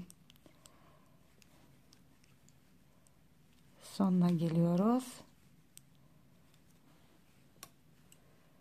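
Metal knitting needles click softly against each other.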